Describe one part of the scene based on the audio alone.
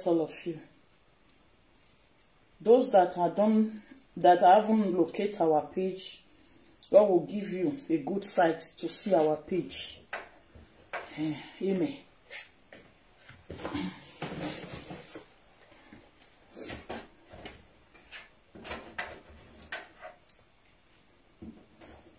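A knife taps on a board, cutting an onion.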